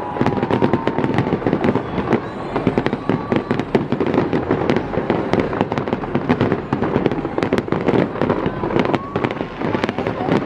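Fireworks crackle and bang rapidly all around.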